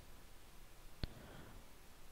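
A game menu clicks as a selection changes.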